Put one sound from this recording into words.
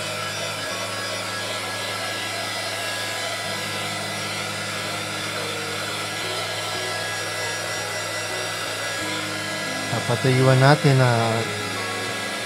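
A heat gun blows with a steady whirring hum.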